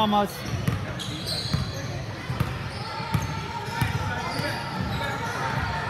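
Basketballs bounce on a hard court in a large echoing gym.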